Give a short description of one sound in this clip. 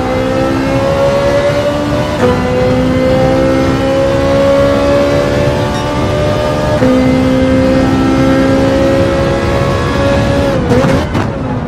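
A racing car engine roars at high revs, climbing in pitch and dropping briefly with each gear change.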